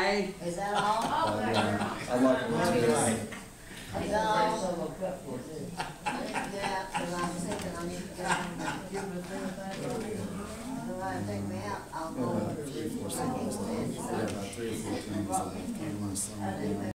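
A young man talks casually through a microphone.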